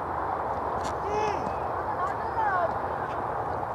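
Young men shout to each other across an open field, some distance away.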